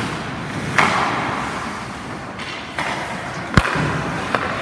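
A hockey puck cracks off a stick in an echoing rink.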